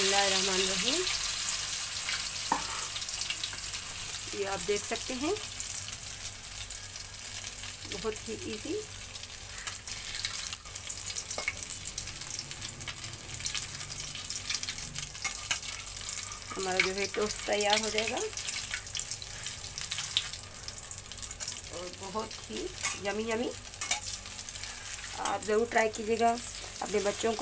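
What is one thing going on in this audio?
Bread sizzles in hot oil in a pan.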